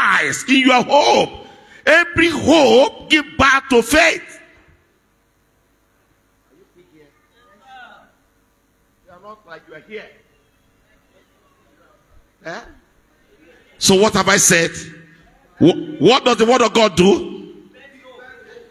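A middle-aged man speaks forcefully into a microphone through loudspeakers in an echoing hall.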